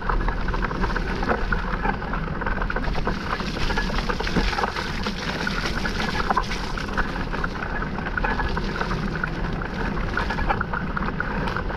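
Bicycle tyres roll and crunch over a muddy dirt trail.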